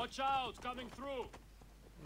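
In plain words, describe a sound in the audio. A horse's hooves clop on stone paving.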